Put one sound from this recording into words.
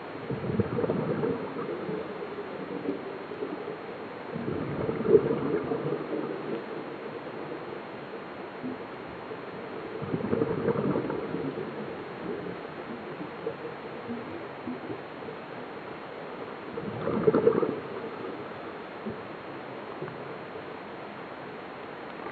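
Water hisses softly, muffled as if heard underwater.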